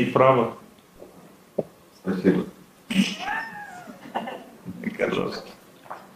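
An older man laughs softly.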